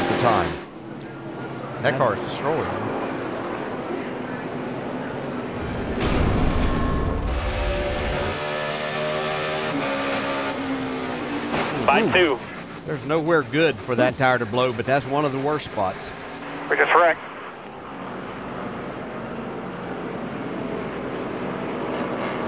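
A race car engine rumbles.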